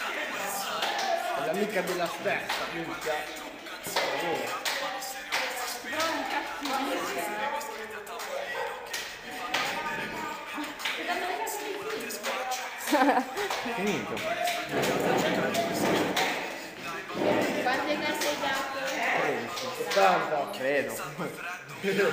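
Young girls sing a clapping chant nearby.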